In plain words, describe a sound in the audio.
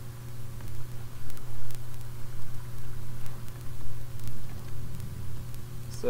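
Lava pops and crackles now and then.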